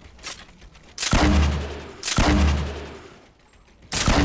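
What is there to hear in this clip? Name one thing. A pickaxe strikes rock with heavy thuds.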